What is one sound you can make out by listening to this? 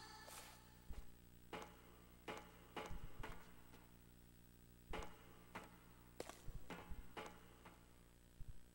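Footsteps patter quickly on a hard surface.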